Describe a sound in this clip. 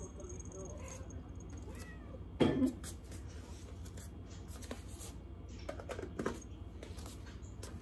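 Slippers shuffle across a wooden floor.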